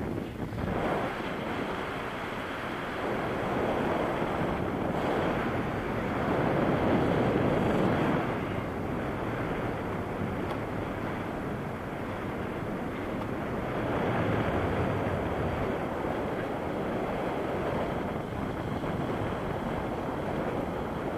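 Wind rushes loudly and steadily past, rising and falling in strength.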